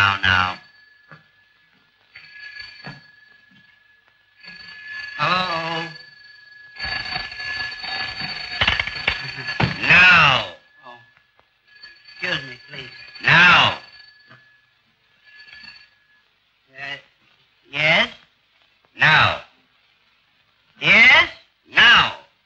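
Men shout excitedly into telephones.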